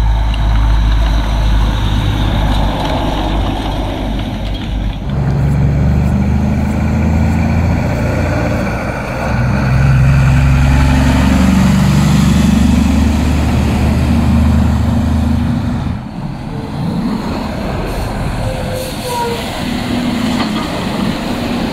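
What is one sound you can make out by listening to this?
Tyres crunch over packed snow.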